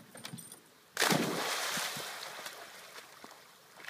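A dog splashes loudly into water and the spray slowly settles.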